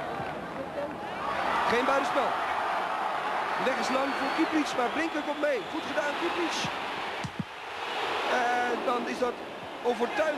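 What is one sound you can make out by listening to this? A crowd in a large stadium cheers and roars, swelling as the attack builds.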